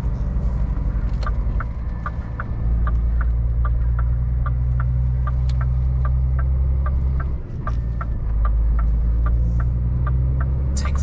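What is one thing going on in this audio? A turn signal ticks evenly inside the cab.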